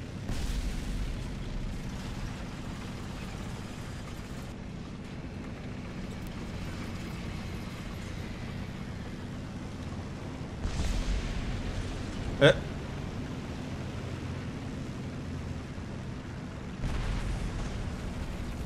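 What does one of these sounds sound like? A tank engine rumbles steadily, with a deep, droning hum.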